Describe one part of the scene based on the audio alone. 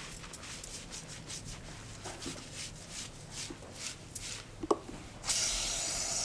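Fingers scrub and squish wet, soapy hair.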